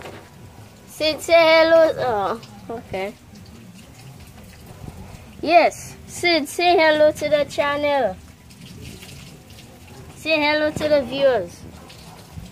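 A young boy talks close by with animation.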